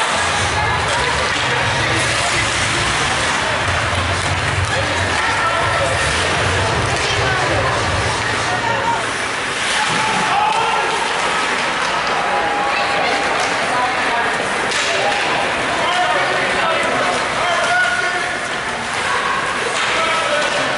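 Ice hockey skates scrape and carve across ice.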